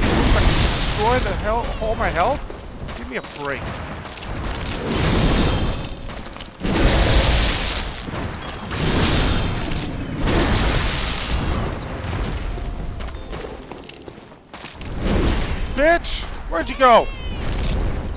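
A blade swishes through the air in repeated slashes.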